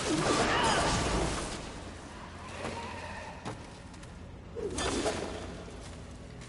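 A chain whip swishes and clanks through the air.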